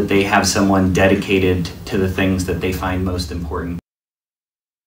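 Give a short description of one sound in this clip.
A man speaks calmly into a microphone, close by.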